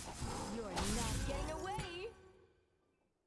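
A loud magical blast whooshes and crackles.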